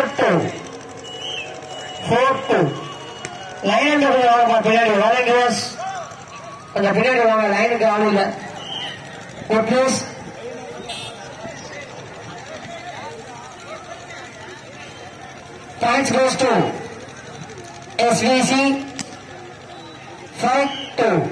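A man announces loudly over a loudspeaker, in short bursts.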